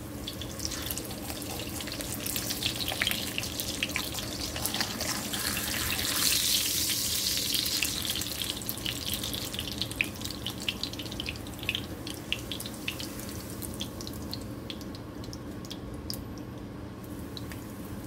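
A wooden spatula scrapes against a frying pan.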